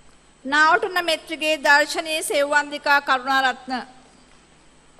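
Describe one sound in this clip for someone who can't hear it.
A man reads out over a loudspeaker in a large hall.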